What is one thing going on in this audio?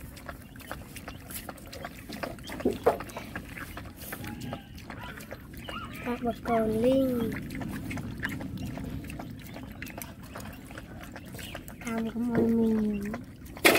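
Dogs lap milk noisily from a bowl.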